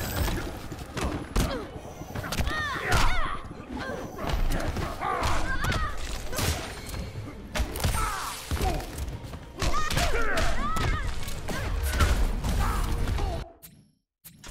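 Punches and kicks thud and crack in a fast fight.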